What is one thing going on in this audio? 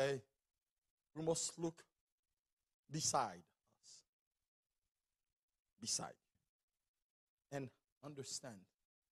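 A man preaches into a microphone in short, emphatic phrases with pauses between them.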